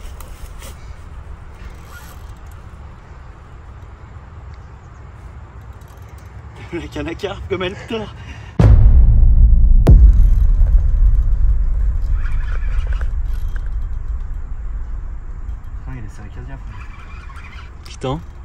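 A fishing reel clicks and whirs as line is reeled in.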